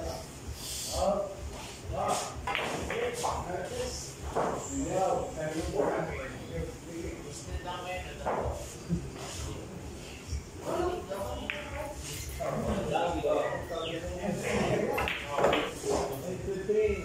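Pool balls clack against each other on a table.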